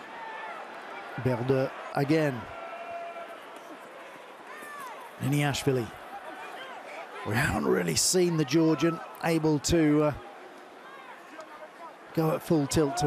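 A large crowd murmurs steadily in the background of an open stadium.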